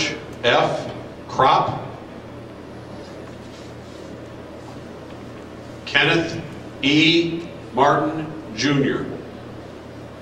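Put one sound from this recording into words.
A man speaks formally into a microphone, heard over a loudspeaker in a quiet hall.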